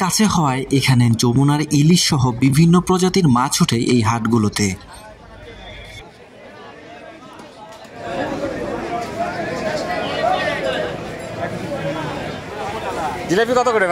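Men talk in a busy outdoor market crowd.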